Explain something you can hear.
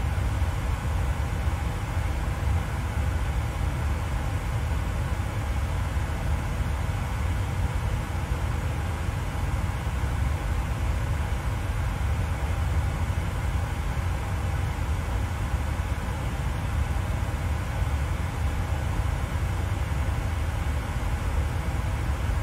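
A jet engine hums steadily with a low cabin rumble.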